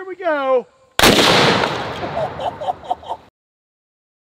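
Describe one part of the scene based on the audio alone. A gunshot bangs loudly and echoes outdoors.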